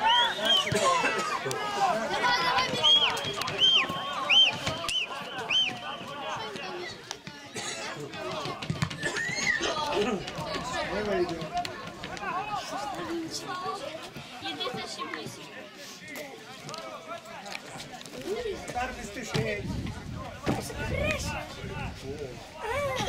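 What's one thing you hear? Men talk and shout nearby outdoors.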